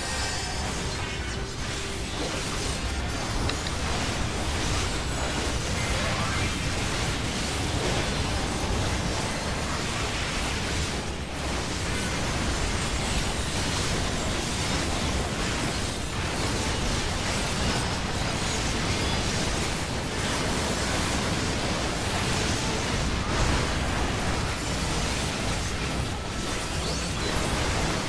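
Loud game music plays steadily throughout.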